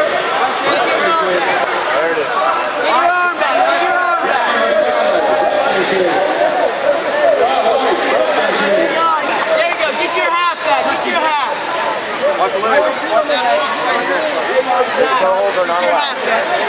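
A crowd of men and women shout and cheer loudly nearby.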